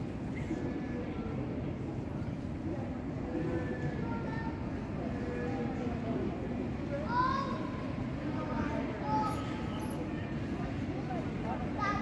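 Two young men talk quietly close by.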